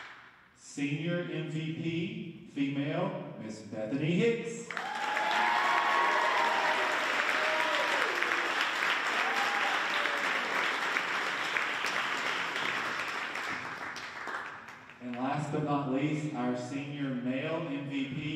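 A small band plays sustained notes in a large echoing hall.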